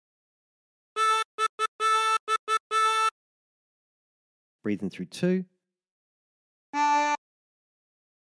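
A harmonica plays a short run of single notes, then one held note.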